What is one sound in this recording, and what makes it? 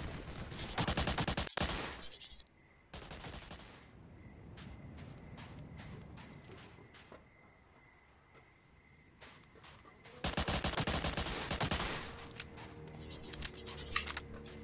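A submachine gun fires rapid bursts of shots.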